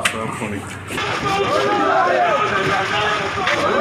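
A crowd of men shouts excitedly outdoors.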